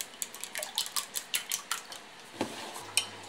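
A whisk clatters quickly against a glass bowl.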